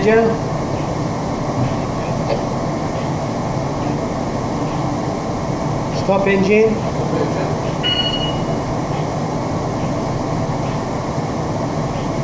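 A large ship's engine rumbles steadily.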